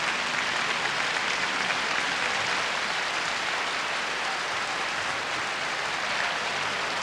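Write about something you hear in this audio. A large crowd applauds and cheers in a big open space.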